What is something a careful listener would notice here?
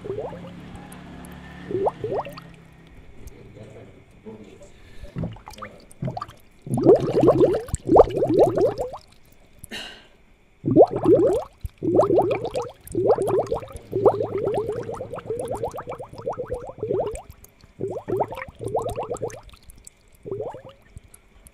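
Air bubbles gurgle steadily in water.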